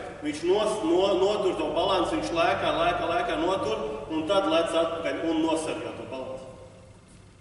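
A man speaks with animation nearby in a large echoing hall.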